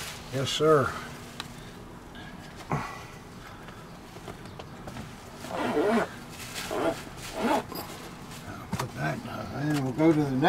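A leather case rustles and thumps as it is handled.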